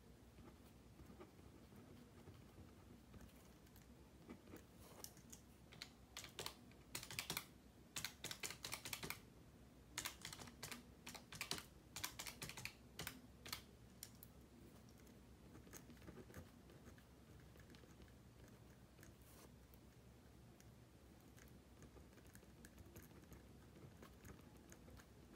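A pen scratches and taps on paper close by.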